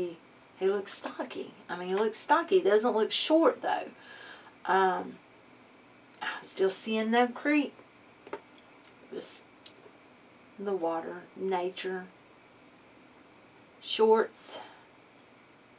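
A woman speaks calmly and close by, in short bursts with pauses.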